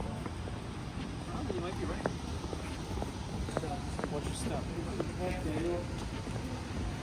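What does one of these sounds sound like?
Young men talk quietly a short way off.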